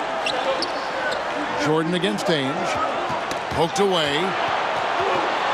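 A large crowd murmurs and cheers steadily in a big echoing arena.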